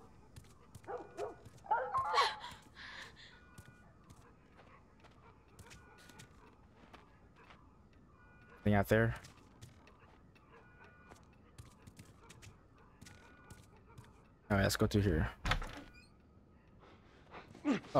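Footsteps tap softly across a wooden floor.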